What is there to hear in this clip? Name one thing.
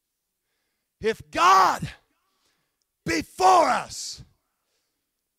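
A man speaks with emphasis through a microphone in a large hall.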